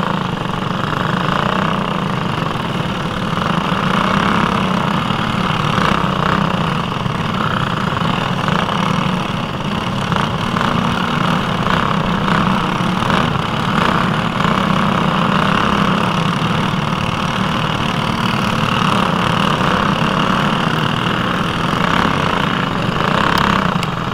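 A kart engine buzzes loudly and close, revving up and down.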